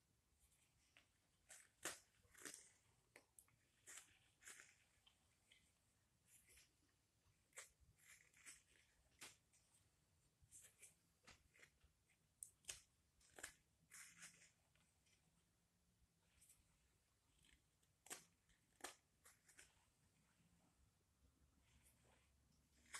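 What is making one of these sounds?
A knife scrapes and shaves wood in short, quick strokes.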